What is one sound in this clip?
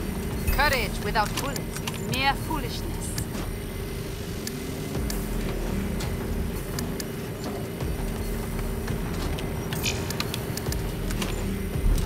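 Short menu clicks tick now and then as items are picked.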